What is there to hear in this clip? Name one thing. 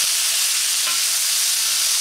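A wooden spoon stirs and scrapes vegetables in a pan.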